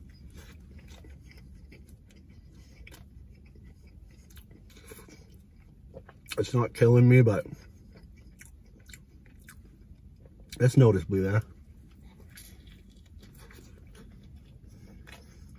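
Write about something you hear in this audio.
A man chews food with soft smacking sounds.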